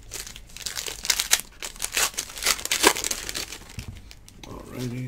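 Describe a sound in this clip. A foil card pack crinkles as it is torn open.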